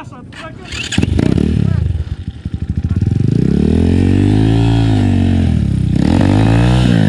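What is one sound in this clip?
A dirt bike engine starts with a bang, sputters and then revs loudly up and down close by.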